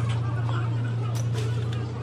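Metal parts clink.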